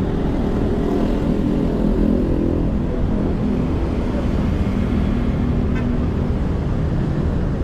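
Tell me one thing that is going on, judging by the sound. A motorcycle engine hums as it passes nearby.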